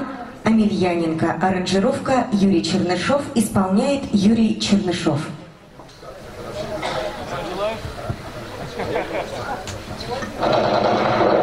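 An elderly man speaks with feeling through a microphone and loudspeakers outdoors.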